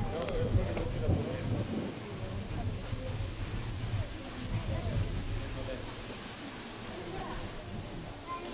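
People talk in the distance.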